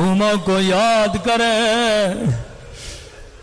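A man sings long, wavering notes through a microphone, then stops.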